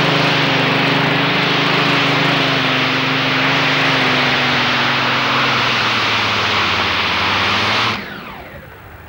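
A pulling tractor's engine roars loudly and strains.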